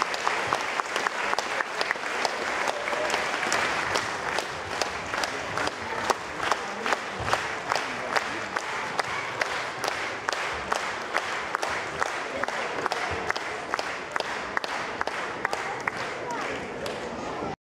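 Lively folk music plays through loudspeakers in a large hall.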